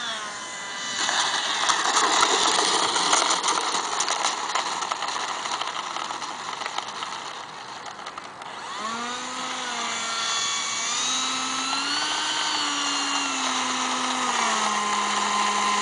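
Small wheels rumble on asphalt as a model jet lands and rolls.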